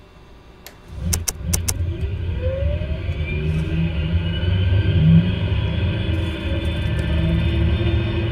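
An aircraft engine starts up and spools up to a steady rising whine and rumble.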